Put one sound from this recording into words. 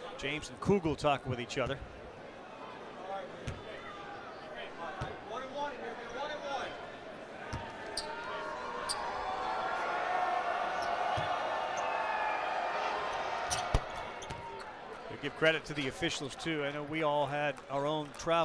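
A large crowd murmurs and swells into a cheer in a big echoing arena.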